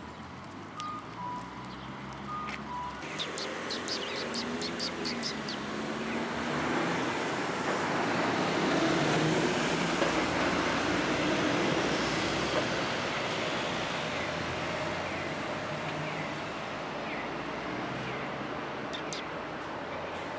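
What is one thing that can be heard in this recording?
Many sparrows chirp and twitter close by.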